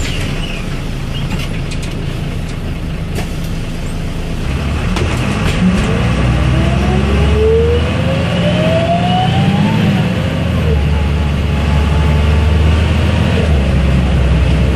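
A bus engine hums and drones steadily, rising in pitch as the bus speeds up.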